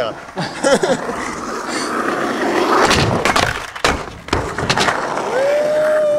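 Skateboard wheels roll and grind on rough asphalt.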